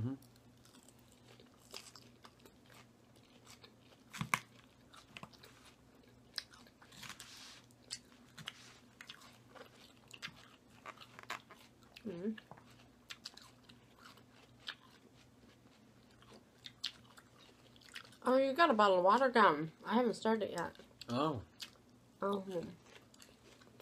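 A woman chews and crunches crisp salad close up.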